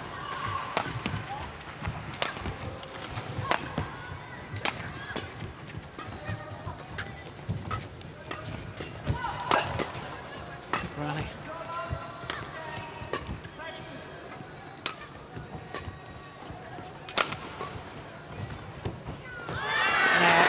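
Rackets smack a shuttlecock back and forth in quick sharp hits.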